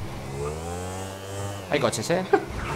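A motorbike engine revs and whines.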